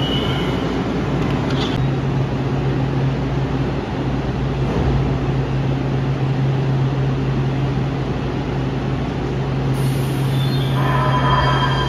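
A train's motor hums steadily while it stands still.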